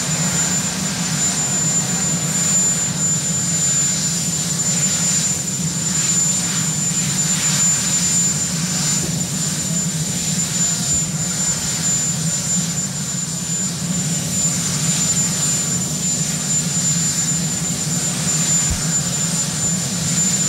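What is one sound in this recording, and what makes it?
A helicopter engine idles with a steady hum and high whine nearby.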